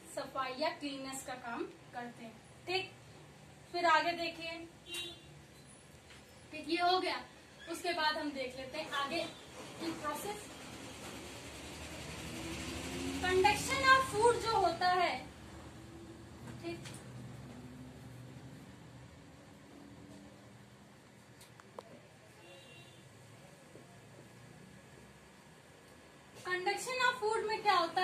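A young woman talks calmly and clearly, close by.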